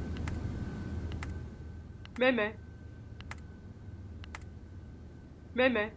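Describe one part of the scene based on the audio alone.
Keys tap softly on a laptop keyboard.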